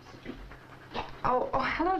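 A young woman speaks quietly into a telephone.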